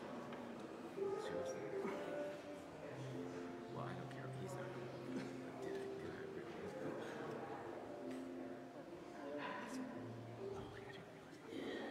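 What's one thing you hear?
Musicians play a slow, soft tune in a large echoing hall.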